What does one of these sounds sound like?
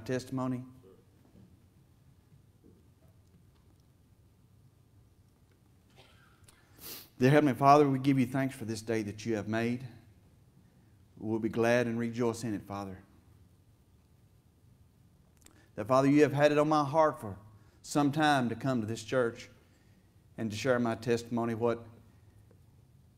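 A middle-aged man preaches into a microphone with pauses, his voice echoing slightly in a large room.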